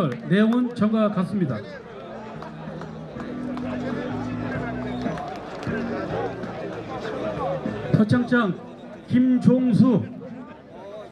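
A man speaks loudly through a loudspeaker outdoors.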